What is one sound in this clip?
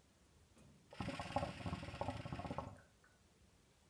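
Water bubbles loudly in a hookah as it is drawn on.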